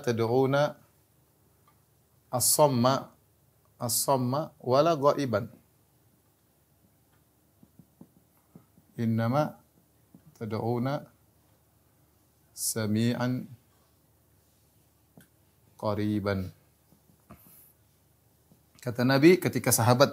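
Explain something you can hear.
A man speaks calmly in short phrases, close to a microphone, with pauses between them.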